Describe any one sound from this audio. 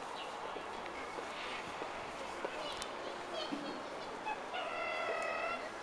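Bare feet pad softly on stone paving.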